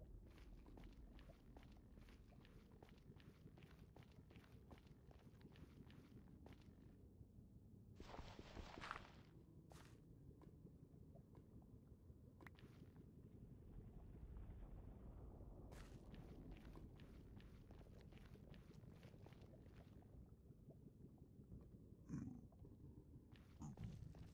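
Footsteps crunch steadily on rough ground.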